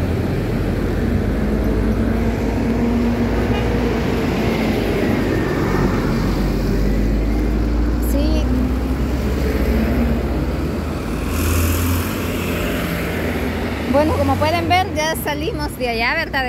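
Motorcycles buzz past.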